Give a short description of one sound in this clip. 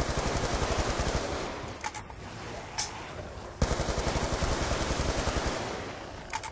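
A rapid-fire gun fires in fast bursts.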